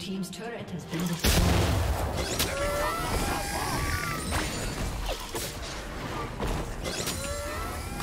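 Game combat effects crackle and burst as characters fight.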